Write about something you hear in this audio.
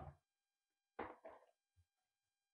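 Plastic bowls knock and clatter against a countertop.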